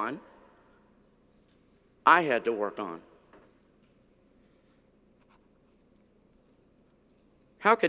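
An older man speaks calmly through a microphone in a large echoing room.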